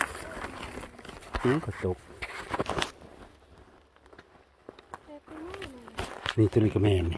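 Footsteps crunch on dry twigs and forest litter.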